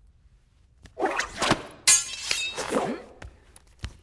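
A woman shouts angrily nearby.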